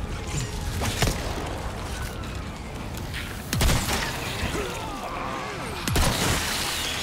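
Gunshots bang loudly with a short echo.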